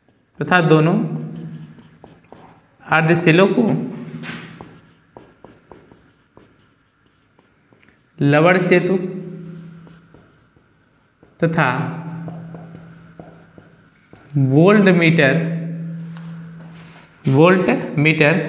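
A man lectures loudly and with animation in a reverberant room.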